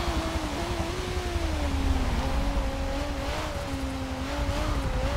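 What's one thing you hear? A race car engine hums steadily, its pitch dropping as the car slows into a bend.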